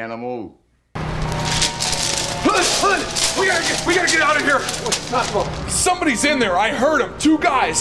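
Two men shout outdoors.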